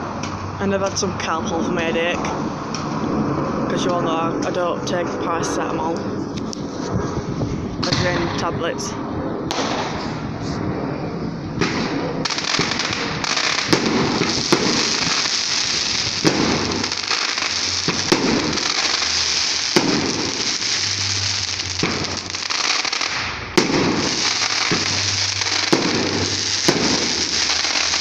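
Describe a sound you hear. Fireworks bang and crackle outdoors.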